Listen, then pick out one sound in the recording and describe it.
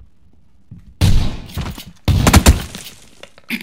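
Shotgun blasts ring out loudly at close range.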